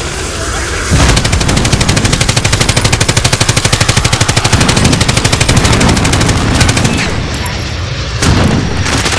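A machine gun fires in rapid, steady bursts.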